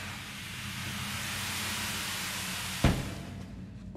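A body lands on a hard ledge with a heavy thud.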